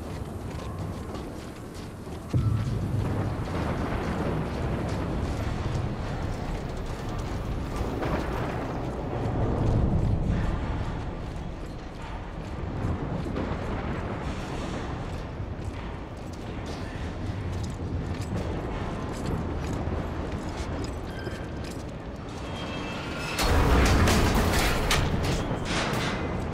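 A strong wind howls and gusts through a snowstorm.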